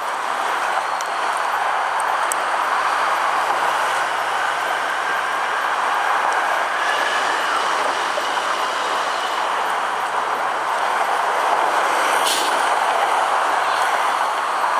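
Strong wind rushes past in the open air.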